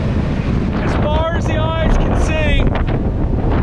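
An elderly man speaks loudly close by, over the wind.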